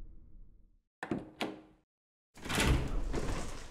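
A heavy wooden door unlatches and creaks open.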